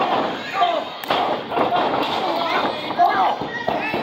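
A wrestler's body slams onto the ring mat with a thud.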